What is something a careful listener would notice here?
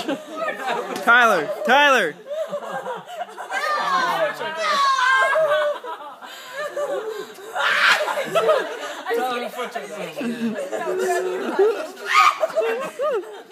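A young woman squeals and shrieks with laughter.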